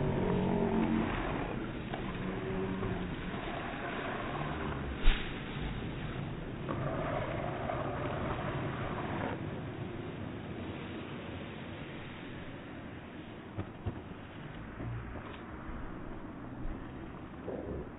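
Skateboard wheels roar and hiss on asphalt.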